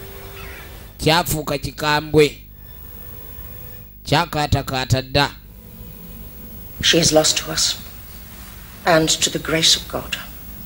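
A woman speaks quietly and solemnly.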